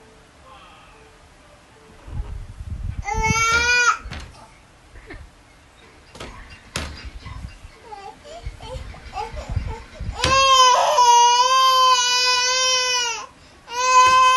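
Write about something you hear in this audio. A toddler pats a wooden door with small hands.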